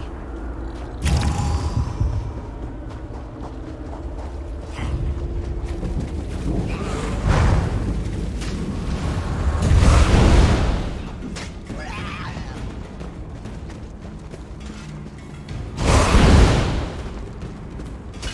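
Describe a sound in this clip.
Spells whoosh and burst.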